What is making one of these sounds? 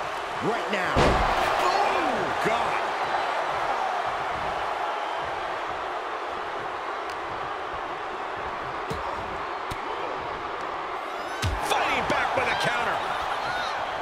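A large crowd cheers and roars in a large arena.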